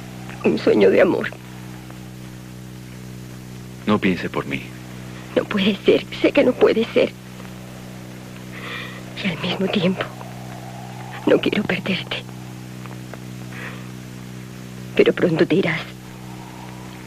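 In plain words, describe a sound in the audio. A young woman speaks calmly in short bursts, close by.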